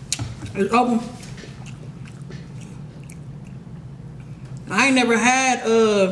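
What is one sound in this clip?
Hot sauce squirts from a squeeze bottle.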